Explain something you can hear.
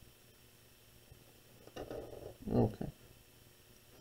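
A metal square is set down on paper with a light knock.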